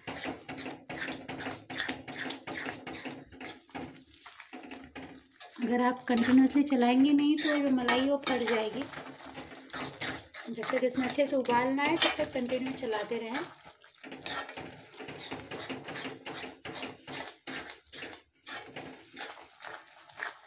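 A metal spoon scrapes and clinks against a pan as food is stirred.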